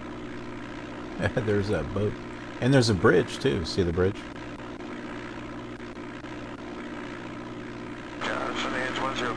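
A small plane's engine drones steadily.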